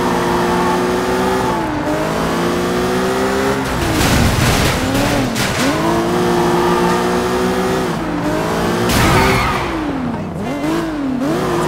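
Tyres screech on the road.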